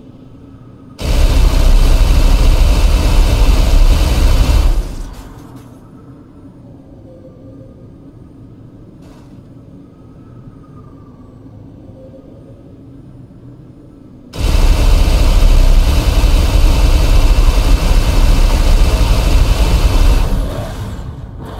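A vehicle's engine roars loudly as it boosts, then dies down.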